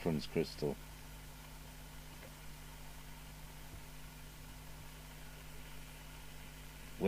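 Metal probe tips tap lightly against a circuit board.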